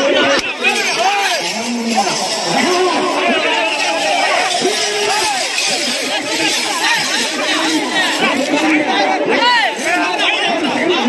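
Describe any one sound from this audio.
A large crowd of men shouts and cheers loudly close by, outdoors.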